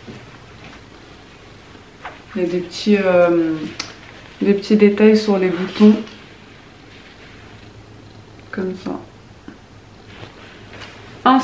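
Fabric rustles as a shirt is handled.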